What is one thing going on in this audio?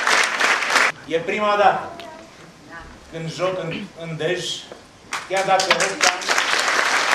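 A man speaks to an audience in a large hall.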